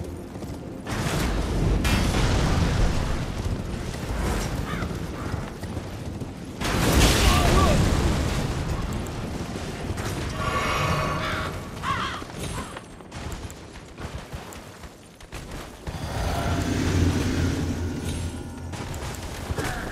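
A horse's hooves clatter on stone.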